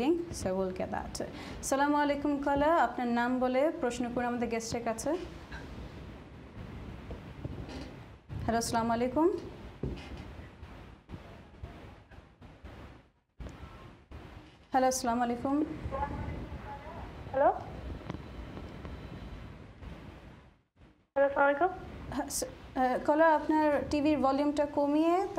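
A young woman speaks calmly into a microphone, in short phrases with pauses.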